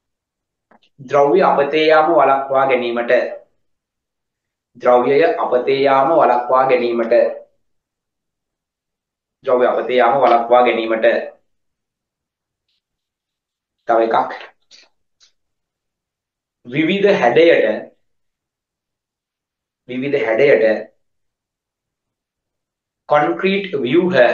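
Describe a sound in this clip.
A man speaks clearly into a close microphone, in short phrases with pauses, as if over an online call.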